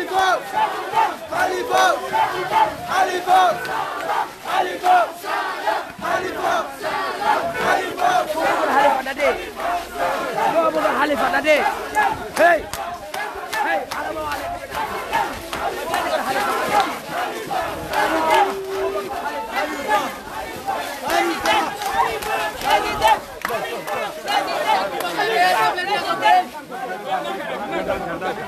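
A large crowd of men shouts and chants loudly outdoors, close by.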